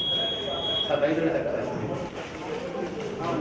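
Men talk in a crowd nearby.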